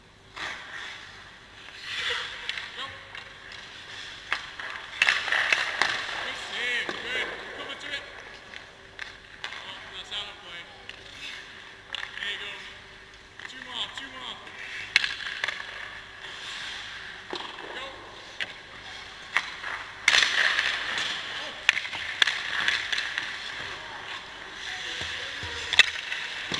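Skate blades scrape and hiss across the ice close by.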